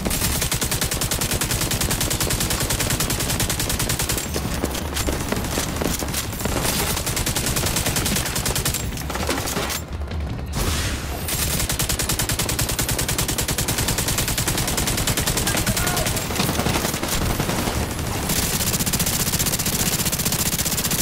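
Rapid rifle fire crackles in bursts.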